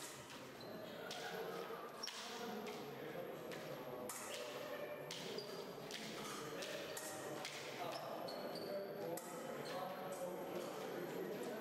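Men and women talk in a murmur around a large echoing hall.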